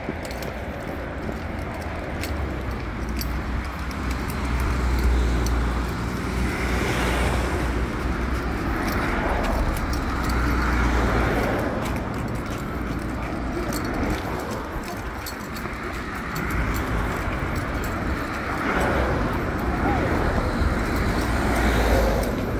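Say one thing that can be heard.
Traffic rumbles steadily along a nearby road.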